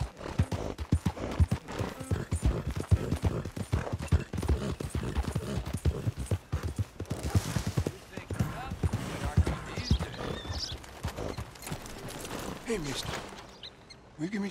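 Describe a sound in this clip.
A horse gallops, hooves thudding quickly on the ground.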